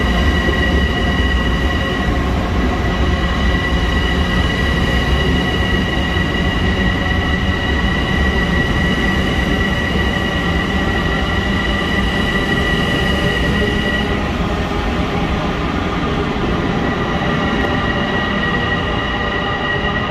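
A train rumbles past close by in an echoing underground station.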